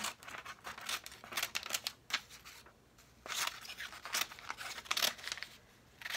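A craft knife scrapes along a sheet of paper.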